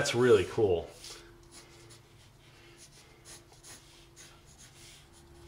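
A pencil scratches lightly across paper in short strokes.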